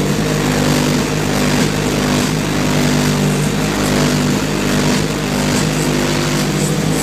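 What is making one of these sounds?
A truck engine idles steadily close by.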